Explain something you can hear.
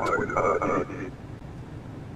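A young man speaks into a headset microphone, casually and close up.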